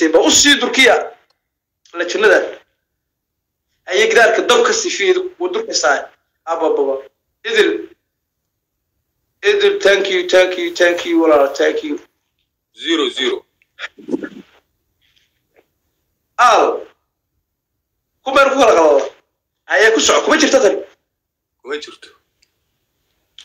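A second man talks calmly over an online call.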